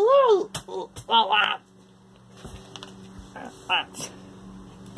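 A young man speaks loudly and with animation, close by.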